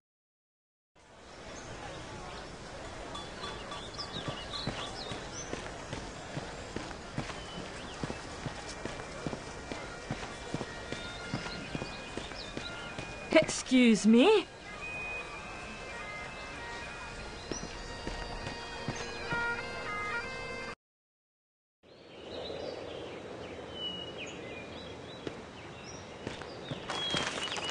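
Footsteps patter softly on grass.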